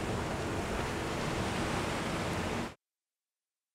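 Waves wash and splash against a moving boat at sea.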